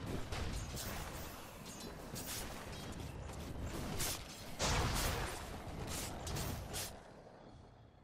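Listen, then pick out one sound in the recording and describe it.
Magic blasts and impacts burst in quick succession.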